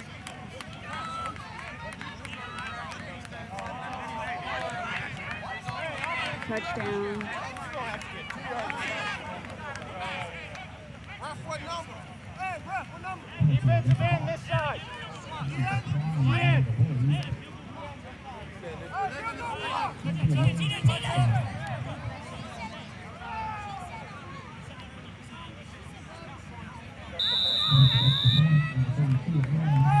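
A crowd of spectators chatters and cheers outdoors at a distance.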